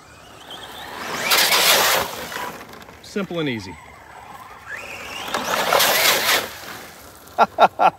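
A toy car splashes through a puddle of water.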